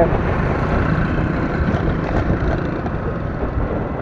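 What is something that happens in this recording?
A motorcycle engine putters past.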